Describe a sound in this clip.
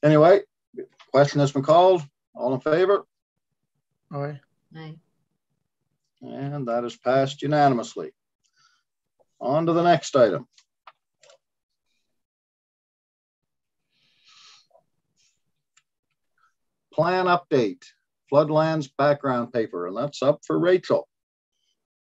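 A middle-aged man speaks calmly over an online call, in short phrases with pauses.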